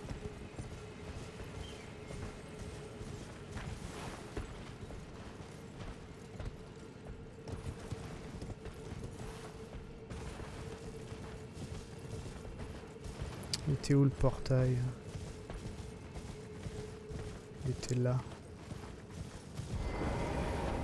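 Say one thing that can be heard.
A horse gallops over soft ground with thudding hooves.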